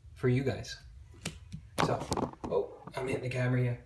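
Playing cards slide and rustle against each other as they are handled.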